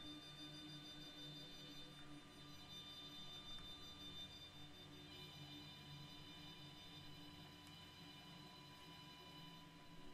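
A warbling electronic signal tone hums steadily.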